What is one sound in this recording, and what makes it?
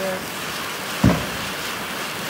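A firework bangs once nearby.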